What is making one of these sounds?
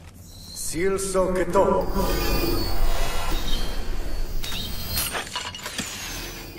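A magical blast explodes with a loud roaring burst.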